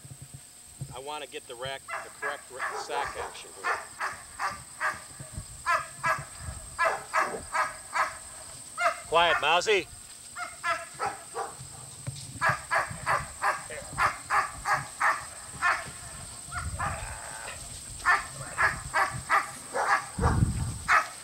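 Puppies yip and whine excitedly.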